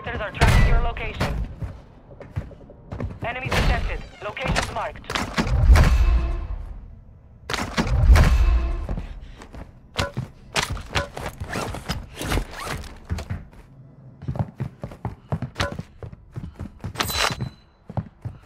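Footsteps thud quickly across hard floors.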